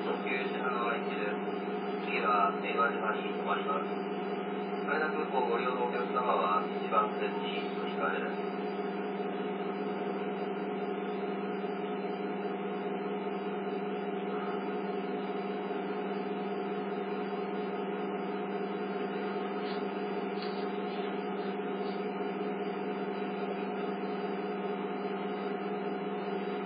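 A stationary train's motor hums steadily through a television speaker.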